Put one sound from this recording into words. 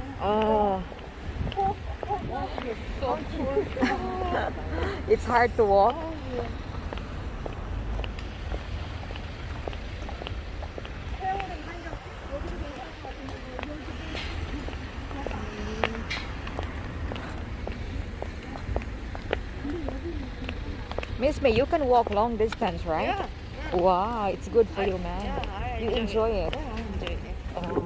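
Elderly women talk with each other nearby.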